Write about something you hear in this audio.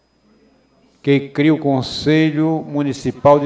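A middle-aged man speaks steadily into a microphone, heard through a loudspeaker.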